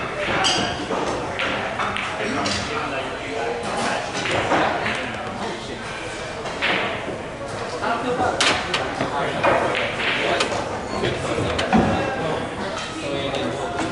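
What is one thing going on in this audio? Pool balls clack together and knock against the cushions.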